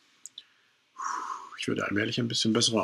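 A man speaks casually close to a microphone.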